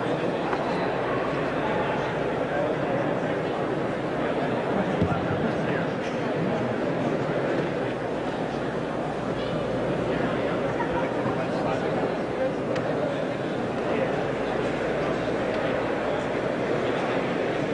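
A crowd murmurs and chatters close by.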